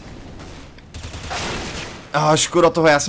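Gunshots fire in a quick burst.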